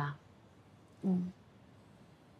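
A second woman answers briefly in a soft voice.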